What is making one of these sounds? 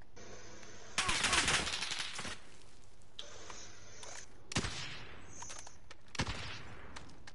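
A rifle fires loud single shots that ring out and echo.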